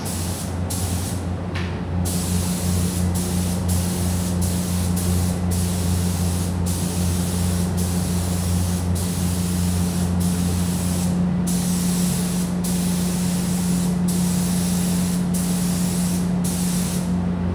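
A spray gun hisses in bursts of air with short breaks.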